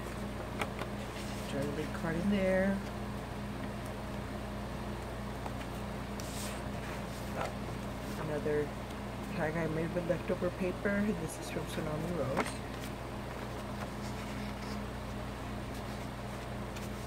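Paper pages rustle and flip as hands turn them.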